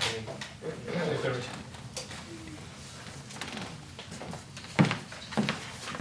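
Papers rustle as a man hands out sheets.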